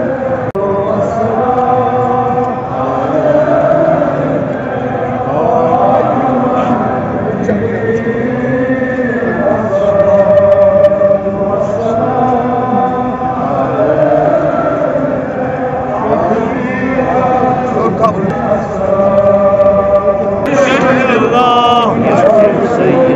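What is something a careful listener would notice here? A crowd of men chants loudly in unison outdoors.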